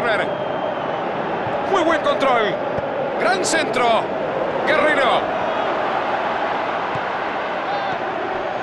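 A large stadium crowd roars and whistles.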